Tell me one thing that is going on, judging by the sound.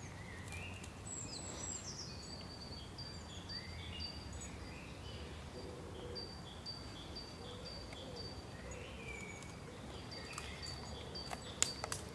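A dog sniffs and rustles through dry leaves and twigs close by.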